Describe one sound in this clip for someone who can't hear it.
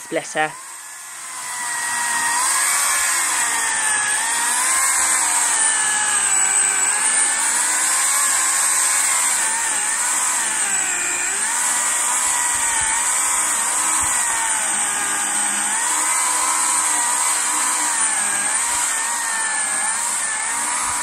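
A chainsaw engine roars loudly and steadily as it cuts through a log.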